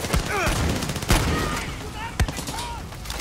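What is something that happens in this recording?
Gunshots fire in quick, sharp bursts.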